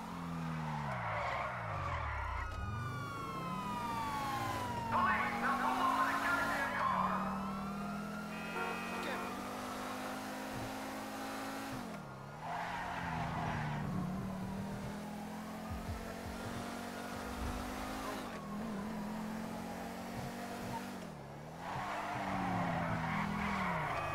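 A car engine revs and roars, rising and falling as the car speeds along.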